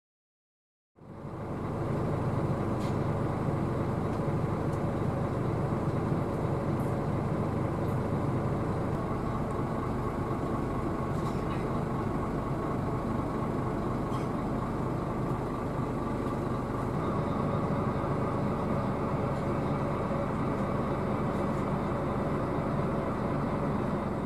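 A diesel coach bus engine rumbles, heard from inside the cabin.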